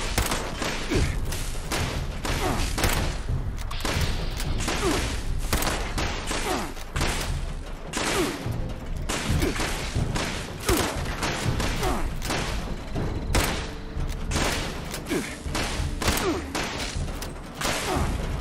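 A gun's action clacks as it is reloaded.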